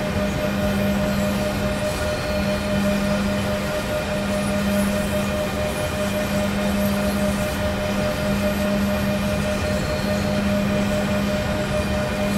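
Train wheels rumble along the tracks.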